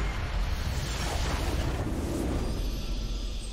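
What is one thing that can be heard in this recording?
A game's crystal shatters with a booming burst.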